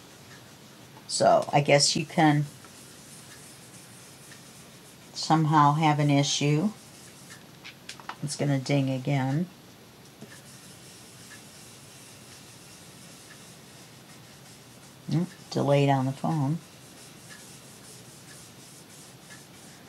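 A foam blending tool rubs softly across paper.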